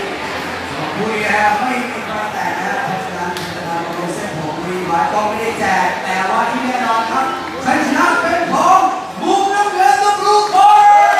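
A man announces loudly through a microphone over loudspeakers in a large echoing hall.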